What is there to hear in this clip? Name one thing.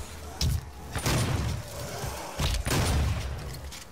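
An explosion bursts with a loud boom.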